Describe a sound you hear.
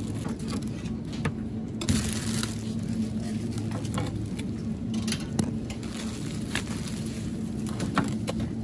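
Metal tongs click and tap against bread rolls and a glass shelf.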